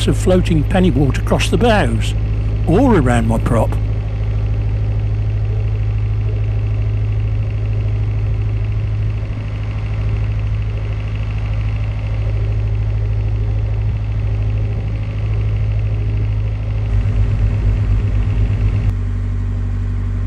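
A boat's diesel engine chugs steadily close by.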